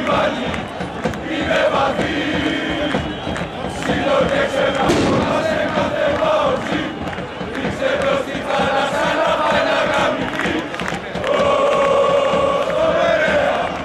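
A large crowd of fans chants and sings loudly in unison.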